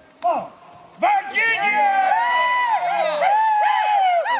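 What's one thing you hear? A group of men cheer loudly.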